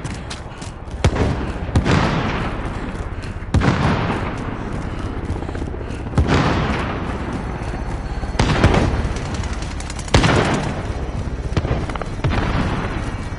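Gunshots crack and boom with echoing tails, again and again.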